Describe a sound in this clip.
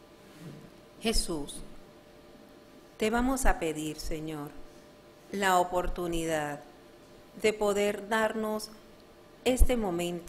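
A young woman reads aloud calmly into a microphone, with pauses between phrases.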